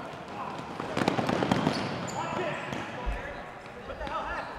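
Rubber balls smack against players and bounce on the floor.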